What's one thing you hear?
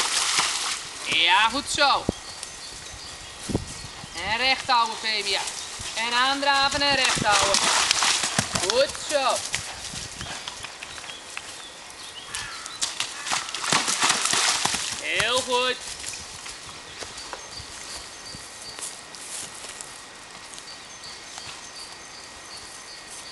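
Horse hooves thud on soft ground.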